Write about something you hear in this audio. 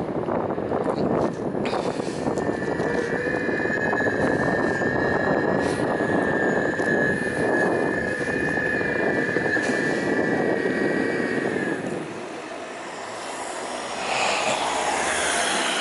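Wind rushes loudly past while moving along a road outdoors.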